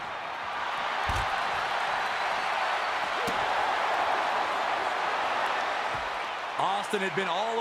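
A large crowd roars and cheers in a big arena.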